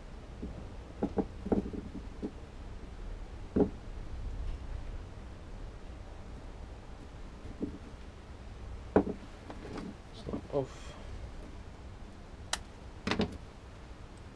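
Small metal parts click and tap in a man's hands.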